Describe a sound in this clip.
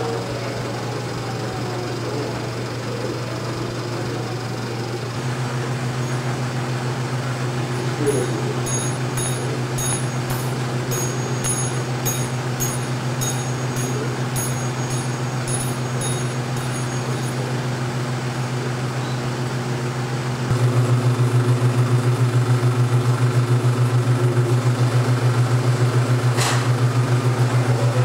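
A film projector runs with a steady low hum.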